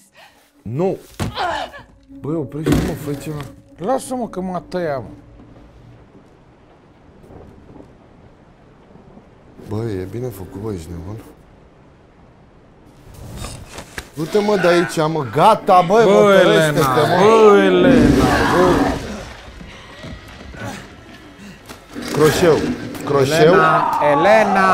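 Young men talk and exclaim with animation close to a microphone.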